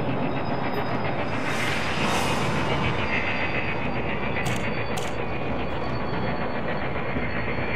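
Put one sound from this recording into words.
A spacecraft engine hums and rumbles steadily.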